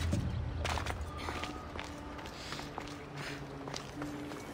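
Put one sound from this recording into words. Soft footsteps tap on stone.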